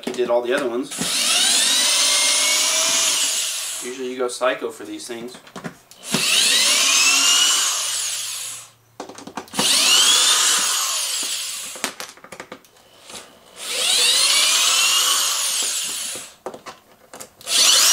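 A cordless drill whirs in repeated bursts, its pitch rising and falling.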